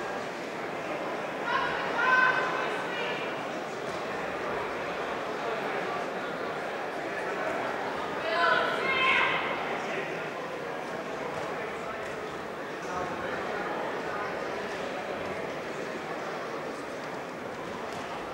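A crowd murmurs steadily in a large hall.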